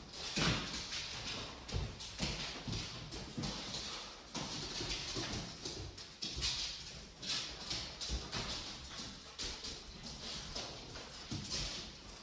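A young woman talks to dogs with animation, close by.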